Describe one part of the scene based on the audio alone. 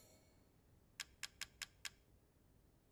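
Short soft clicks tick in quick succession.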